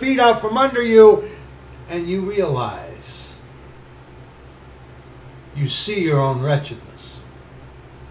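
A middle-aged man talks with animation close to a microphone, in short bursts with pauses.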